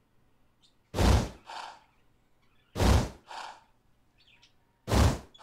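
A blade whooshes sharply through the air, several times.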